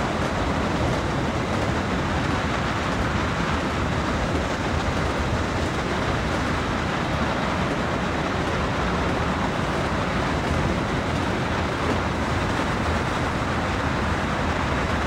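A train's engine rumbles steadily.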